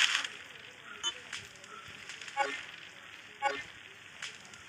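A short electronic chime sounds a few times.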